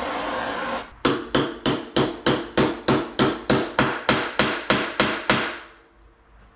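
An impact wrench hammers in rapid bursts.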